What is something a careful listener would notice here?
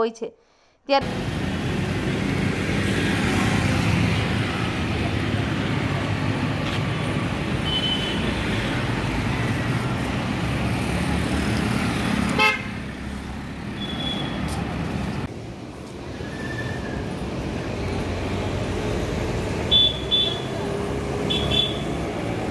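Traffic rumbles steadily on a nearby road.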